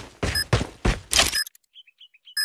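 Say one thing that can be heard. A rifle fires rapid shots close by.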